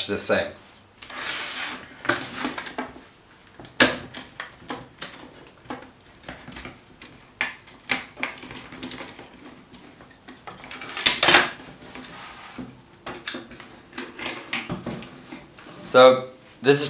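Plastic and metal parts of a cordless drill click and clatter as they are handled.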